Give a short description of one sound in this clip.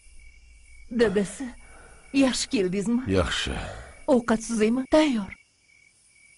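An elderly woman speaks firmly and with feeling.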